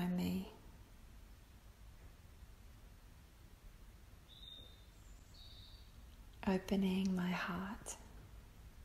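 A woman speaks softly and calmly nearby.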